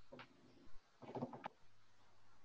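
A young woman speaks briefly and quietly, heard through a computer microphone.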